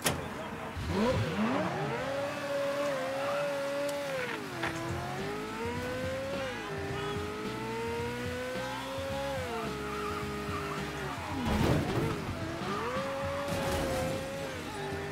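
A car engine roars and revs up and down as the car speeds along.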